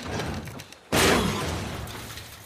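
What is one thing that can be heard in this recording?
A heavy metal door scrapes open.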